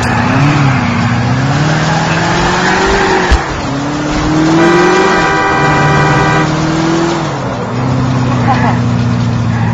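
A video game sports car engine revs and shifts gears.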